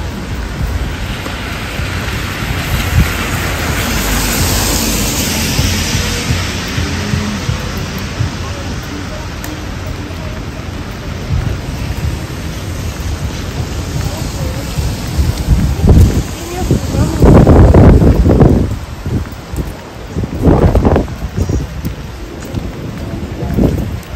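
Rain falls steadily onto wet pavement outdoors.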